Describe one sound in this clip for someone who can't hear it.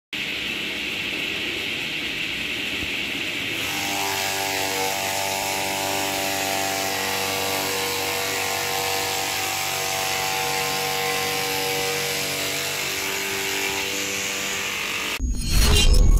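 A machine motor hums steadily.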